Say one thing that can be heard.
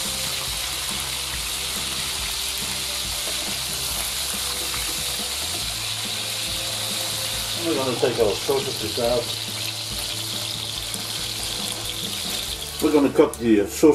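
Sausages sizzle steadily in hot fat in a pan.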